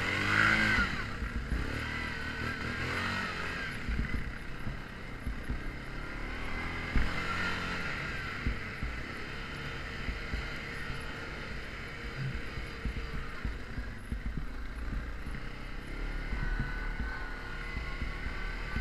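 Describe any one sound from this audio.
A quad bike engine drones steadily up close.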